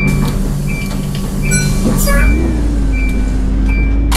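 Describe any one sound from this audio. A bus door slides shut with a thud.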